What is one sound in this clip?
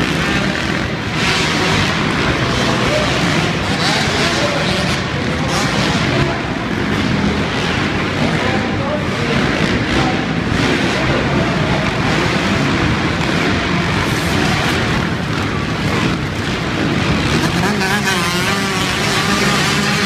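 Dirt bike engines rev and roar loudly in a large echoing arena.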